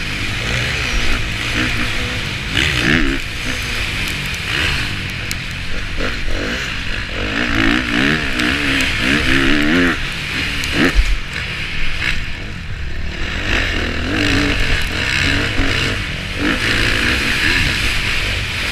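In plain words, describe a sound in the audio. A motocross bike engine revs hard and roars close by, rising and falling in pitch.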